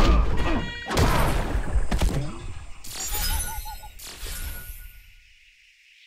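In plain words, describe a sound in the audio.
A fighting game plays heavy hit and impact sound effects.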